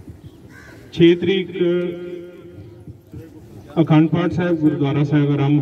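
A man speaks loudly into a microphone through a loudspeaker, in a reverberant space.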